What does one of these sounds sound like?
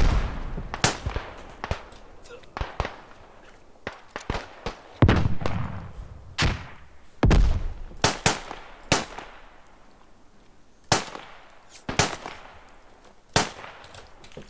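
A pistol fires sharp, loud shots.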